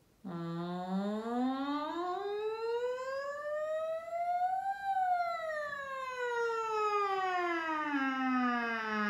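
A woman sings one long vowel close to a microphone, her voice sliding smoothly up and then back down.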